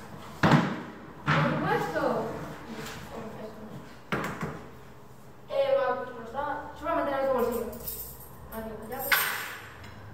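Children talk and laugh excitedly in a room.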